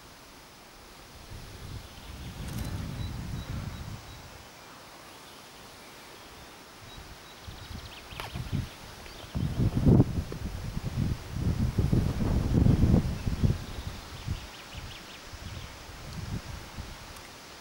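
Wind gusts blow across open ground, rumbling in bursts.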